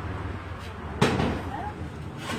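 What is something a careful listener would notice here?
A metal locker door clanks shut.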